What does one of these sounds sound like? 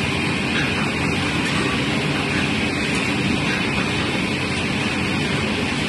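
A machine motor hums loudly and steadily.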